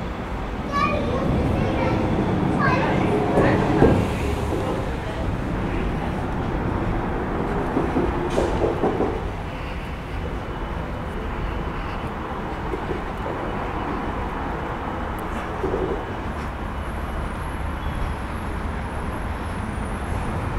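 Wind blows outdoors, rumbling steadily in the background.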